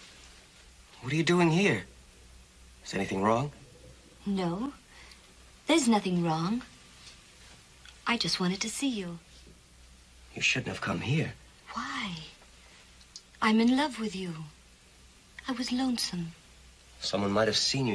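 A woman speaks tensely, close by.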